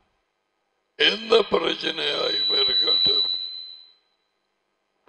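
An elderly man speaks with animation into a close headset microphone.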